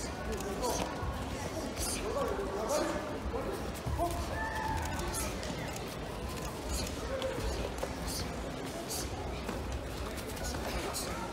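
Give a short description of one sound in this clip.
Fighters' kicks and punches thud against padding.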